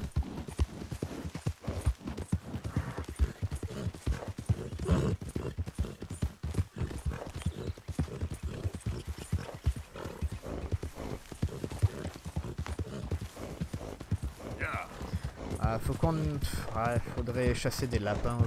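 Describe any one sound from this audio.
Horse hooves pound rhythmically on a dirt track.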